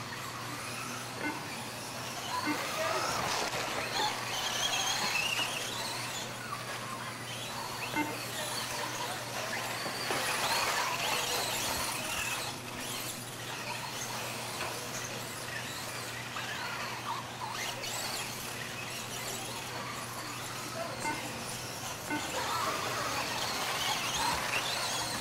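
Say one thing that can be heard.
Plastic wheels of small cars rattle over a dirt track.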